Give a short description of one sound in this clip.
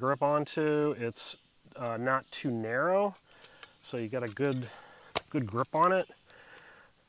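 A metal shovel blade clicks as it is folded and locked.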